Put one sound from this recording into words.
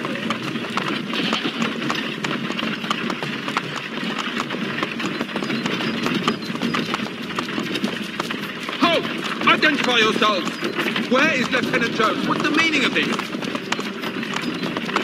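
A wagon rattles and creaks as it rolls over a dirt road.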